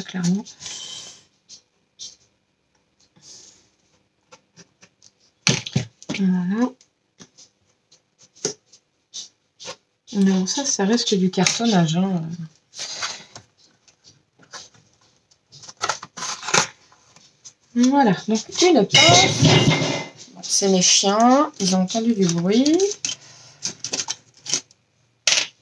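Cardboard scrapes and rustles as it is pressed and folded.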